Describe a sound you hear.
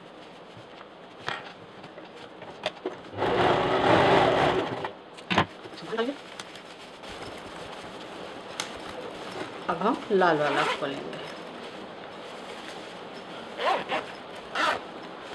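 Fabric rustles as hands handle it.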